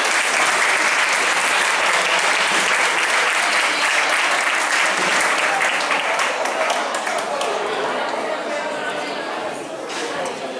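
An audience applauds loudly in an echoing room, then the applause fades.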